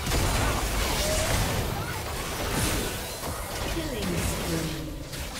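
Spells and weapon hits clash and crackle in a fast battle.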